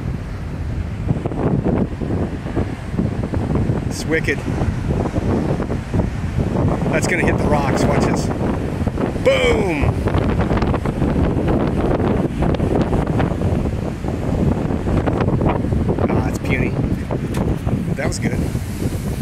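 Wind rumbles loudly across the microphone.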